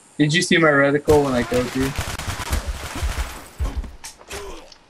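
Gunshots rattle in quick bursts.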